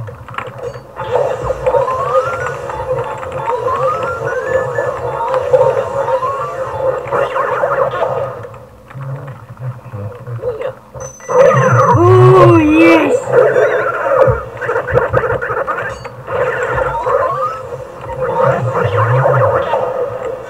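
A vacuum cleaner whirs loudly and steadily.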